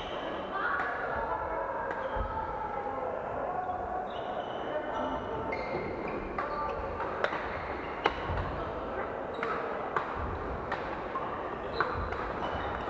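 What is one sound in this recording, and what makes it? Shuttlecocks are struck sharply by rackets, over and over.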